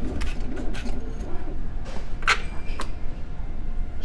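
Casino chips clack together as they are gathered.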